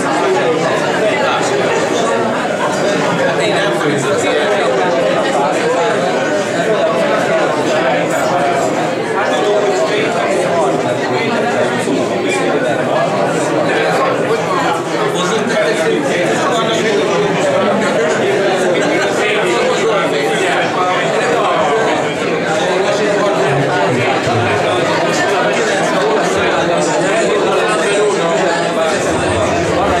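A crowd of men and women chatters loudly in a large room.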